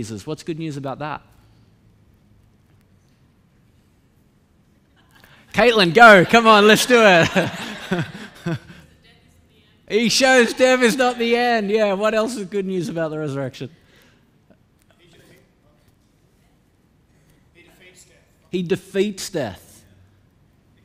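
A man speaks with animation into a microphone in a large echoing hall.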